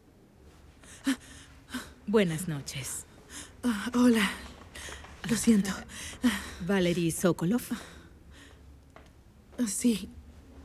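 A woman speaks in an urgent, agitated voice close by.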